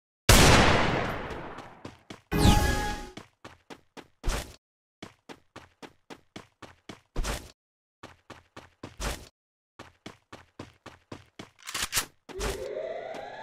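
Quick footsteps patter on hard ground.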